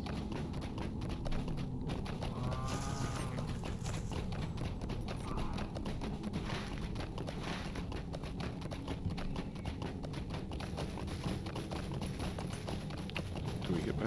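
Hooves thud steadily as a horse trots over grass.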